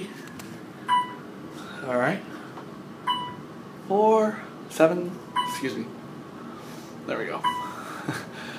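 An elevator chime beeps briefly as each floor passes.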